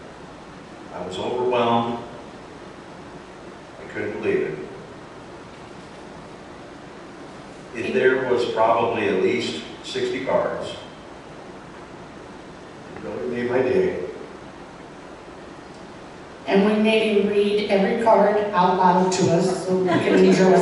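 A woman speaks calmly into a microphone in short phrases with pauses.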